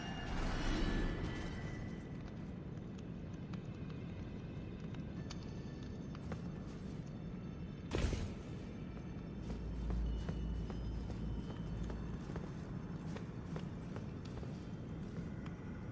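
Footsteps clatter on stone.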